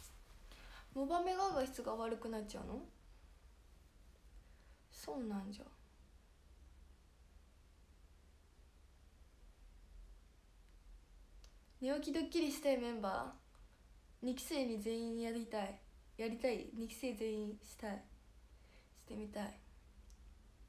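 A young woman speaks close to a microphone in short, casual bursts with pauses between.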